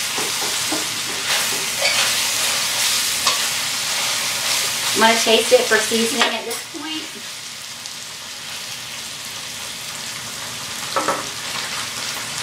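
A metal spoon scrapes and clinks against a pan.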